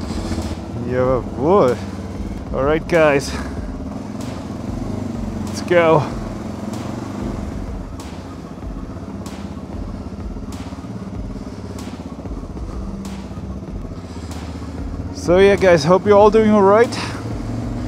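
A motorcycle engine revs up sharply several times.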